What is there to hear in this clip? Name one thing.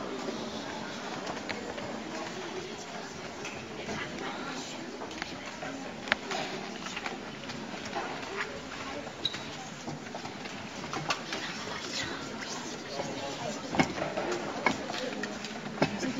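A choir of young girls sings softly in a large hall.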